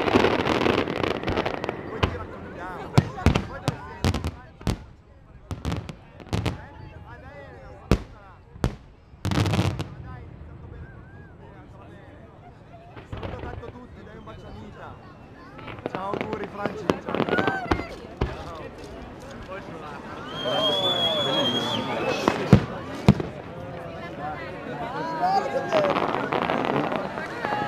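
Fireworks boom and crackle loudly outdoors.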